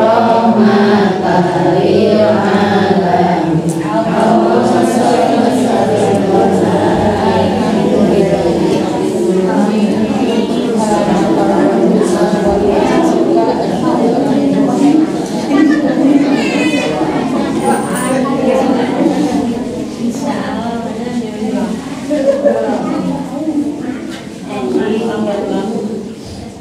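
A group of women chant together in unison, in a room with a light echo.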